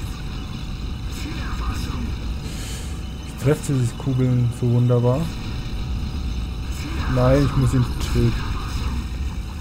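Laser weapons fire in quick bursts.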